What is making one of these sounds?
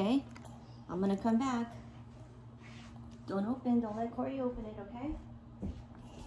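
A young girl talks close by in a small, high voice.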